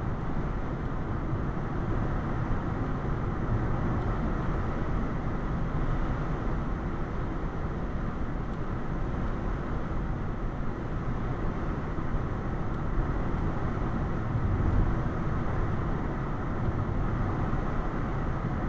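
Tyres roll with a low rumble on the road.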